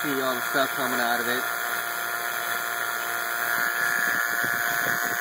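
A vacuum pump motor runs with a steady whirring hum.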